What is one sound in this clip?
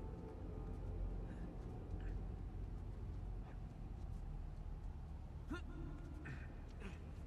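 A young man speaks into a close microphone.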